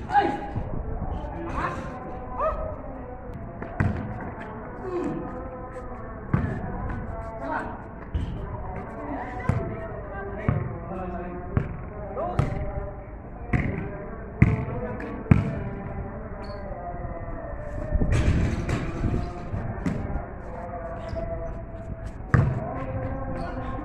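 A basketball bounces on a hard court, echoing off surrounding walls.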